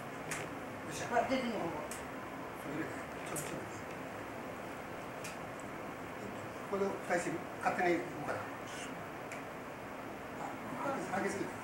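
Women talk quietly nearby.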